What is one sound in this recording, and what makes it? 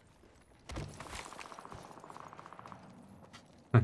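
Quick footsteps run over the ground.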